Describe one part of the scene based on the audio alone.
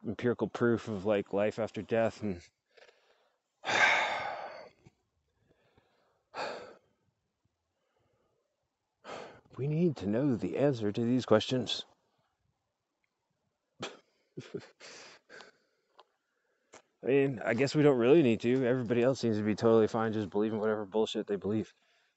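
A man talks calmly and close up, heard through a microphone.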